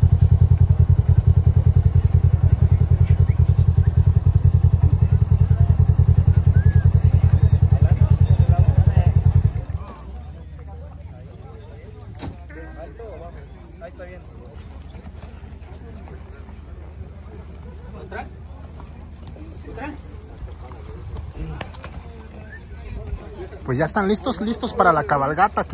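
A horse's hooves stamp and thud on grass.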